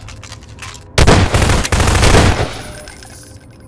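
Rapid gunfire bursts ring out loudly.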